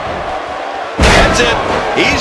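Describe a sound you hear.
A body slams hard onto a wrestling mat with a loud thud.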